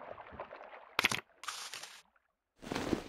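Playing cards flip over with quick swishes.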